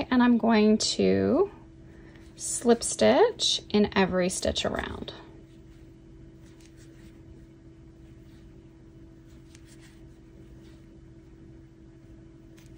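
A crochet hook clicks softly while pulling yarn through stitches.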